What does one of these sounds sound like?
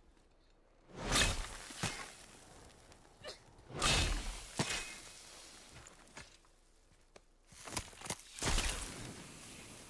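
An axe strikes hard crystal with loud ringing cracks.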